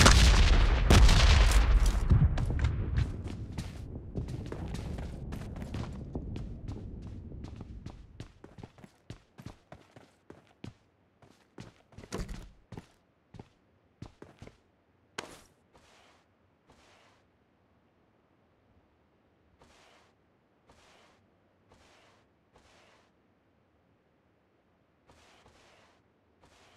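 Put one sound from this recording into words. Footsteps tap on a hard floor at a steady walking pace.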